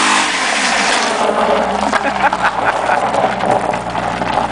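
Tyres crunch over gravel as a car pulls away.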